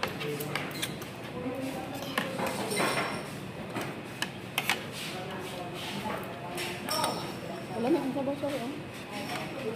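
Cutlery clinks and scrapes on a plate.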